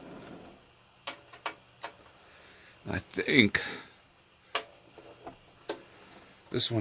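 Metal panels click and knock as they are fitted into place.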